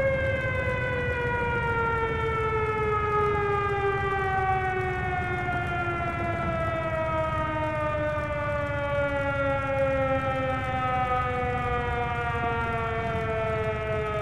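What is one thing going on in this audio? A propeller plane's engine hums steadily and slowly winds down in pitch.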